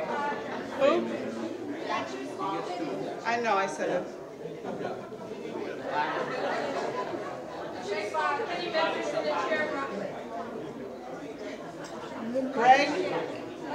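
A middle-aged woman speaks through a microphone and loudspeakers in a large echoing hall.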